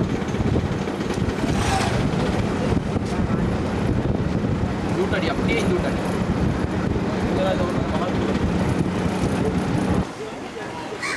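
A motorcycle engine hums steadily nearby.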